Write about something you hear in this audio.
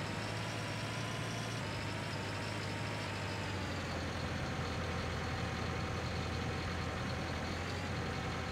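A small tracked dumper's diesel engine drones steadily as it drives along.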